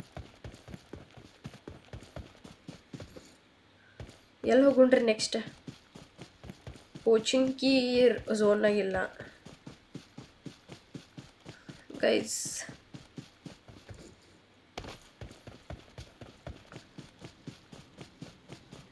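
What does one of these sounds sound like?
Footsteps patter quickly and steadily on grass.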